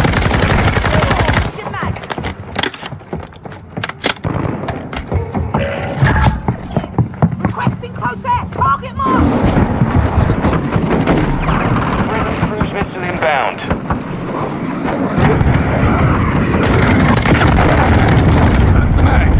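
A rifle fires in quick bursts of sharp shots.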